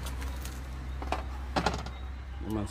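A wrapped package knocks down onto a metal grill.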